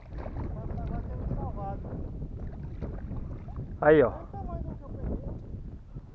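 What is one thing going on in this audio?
Water splashes as a fish is netted.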